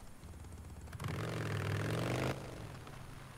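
A motorbike engine revs and rumbles.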